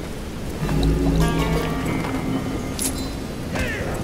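Flesh splatters wetly.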